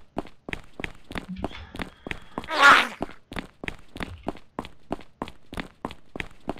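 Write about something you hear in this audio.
Footsteps thud at a steady, quick pace.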